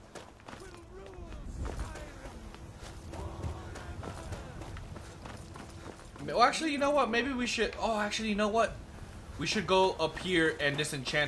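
Footsteps walk across stone.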